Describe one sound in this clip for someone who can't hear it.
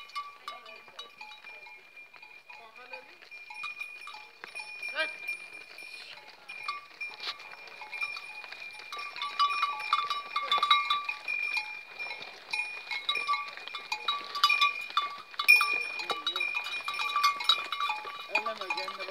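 Cattle hooves shuffle and knock on dry ground nearby.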